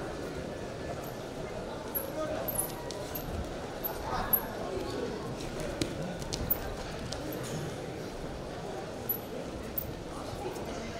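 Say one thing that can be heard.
Shoes squeak sharply on a wrestling mat.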